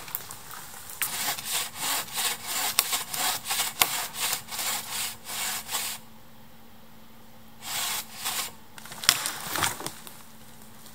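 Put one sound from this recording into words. A dead tree trunk creaks and rustles as it is pushed back and forth in rhythm.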